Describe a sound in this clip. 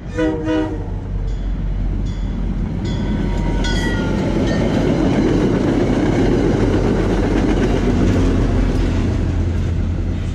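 A passenger train approaches and rumbles past on the tracks.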